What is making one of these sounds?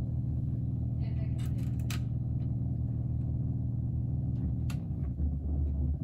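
Knobs click as a hand turns them.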